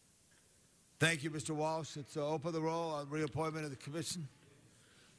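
A man reads out clearly through a microphone.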